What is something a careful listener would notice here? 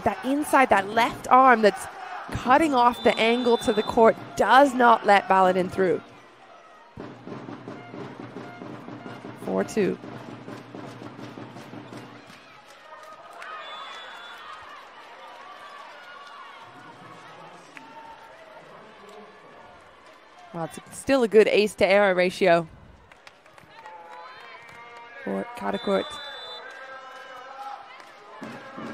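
A crowd cheers and claps in a large echoing hall.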